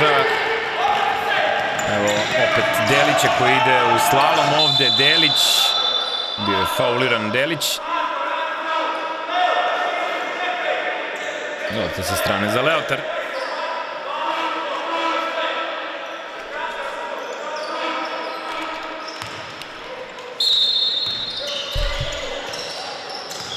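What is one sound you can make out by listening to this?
A basketball bounces on a hard floor in an echoing hall.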